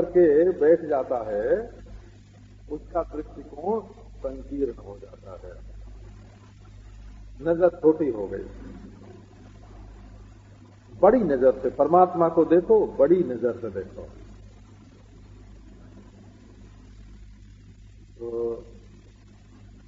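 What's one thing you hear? An elderly man speaks calmly in bursts, with pauses, as if giving a talk.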